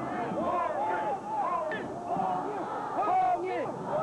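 A crowd of men chants slogans loudly outdoors.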